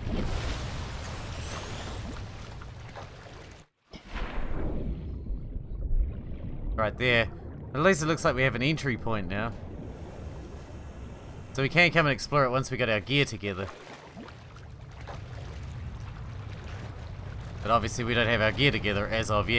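Water churns and bubbles with a low underwater rumble.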